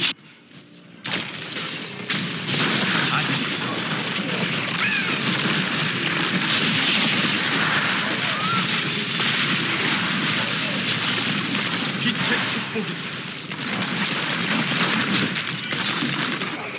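Game spell effects crackle and explode in a dense, busy clatter.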